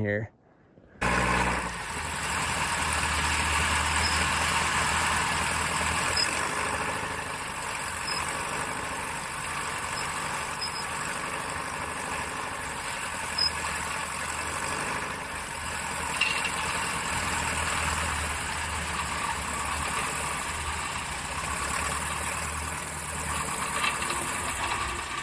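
A small plane's propeller engine drones loudly and steadily.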